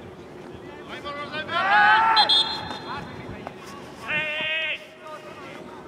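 Young men shout to each other from a distance across an open field.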